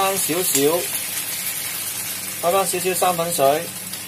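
Water splashes into a hot pan with a loud hiss.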